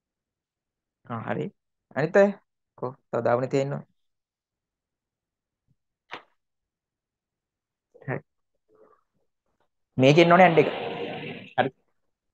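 A young man speaks calmly and close, in short phrases with pauses.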